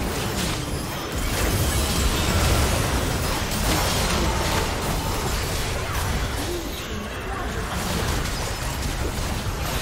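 Video game spell effects burst and clash in a busy fight.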